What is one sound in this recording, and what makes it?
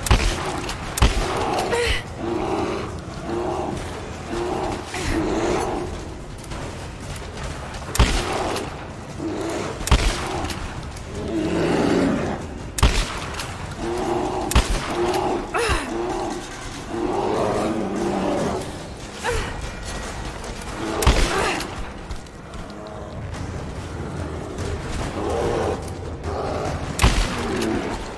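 A shotgun fires loud, sharp blasts.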